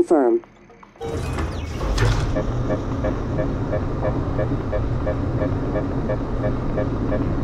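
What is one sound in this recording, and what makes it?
An elevator hums and rumbles steadily as it moves.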